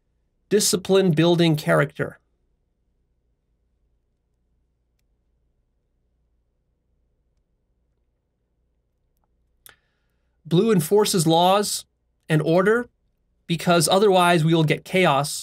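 A man speaks calmly and close to a microphone, with long pauses.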